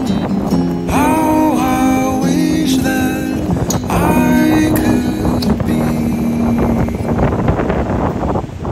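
Waves crash and churn against rocks on a windy shore.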